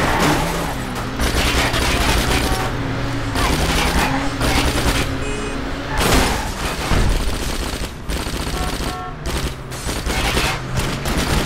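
Car tyres screech as the car slides.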